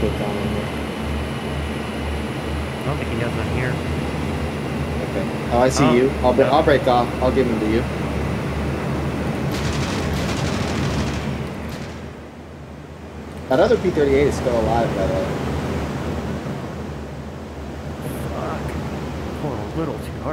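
An aircraft engine drones steadily from inside a cockpit.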